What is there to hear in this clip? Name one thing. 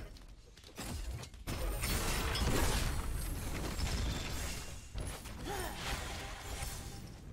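Game sound effects of fighting clash and whoosh.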